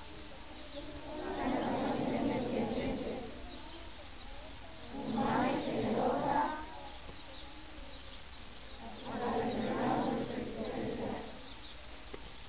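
A band of snare drums plays short rolls outdoors.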